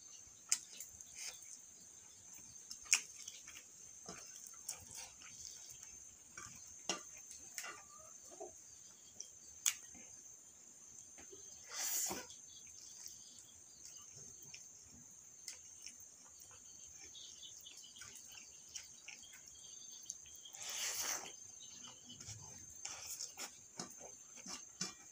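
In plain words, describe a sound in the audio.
A man chews food noisily, close by.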